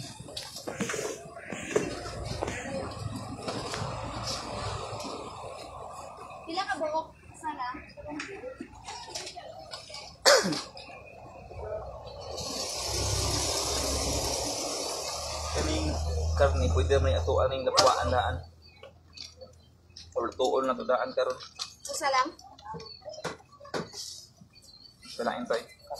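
A young man talks close by in a casual voice.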